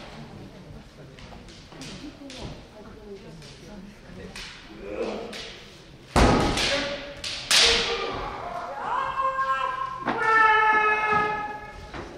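Bare feet stamp and slide on a wooden floor.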